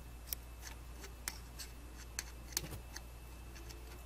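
A cotton swab scrapes and taps lightly against a circuit board.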